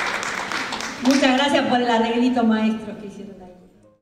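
A woman sings into a microphone through loudspeakers.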